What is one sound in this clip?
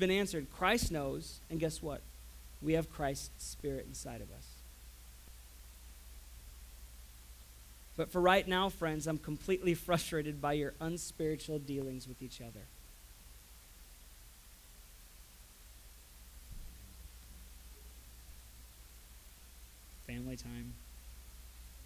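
A young man talks calmly into a microphone, close by.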